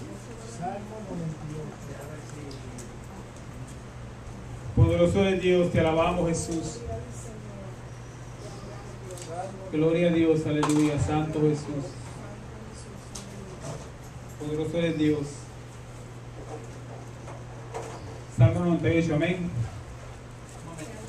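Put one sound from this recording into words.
A man speaks into a microphone in short bursts, heard through loudspeakers.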